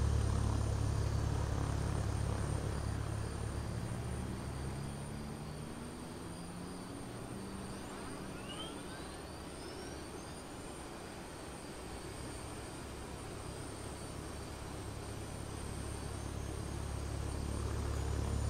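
Jet engines hum and rumble steadily.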